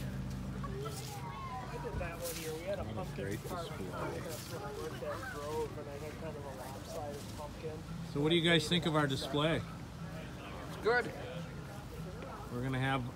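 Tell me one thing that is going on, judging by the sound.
Adults chat casually nearby outdoors.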